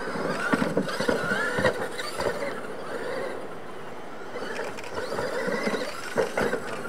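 The electric motors of radio-controlled monster trucks whine as they race.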